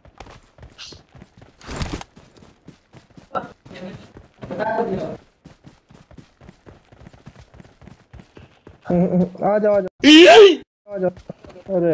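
Footsteps run over rock.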